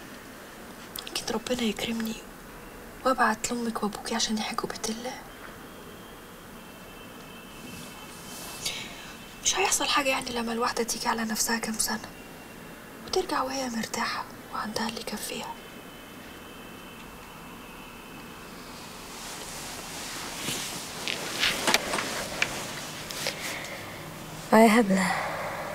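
A woman speaks softly and calmly nearby.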